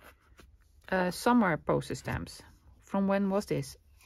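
A hand-held hole punch snaps through a sheet of card.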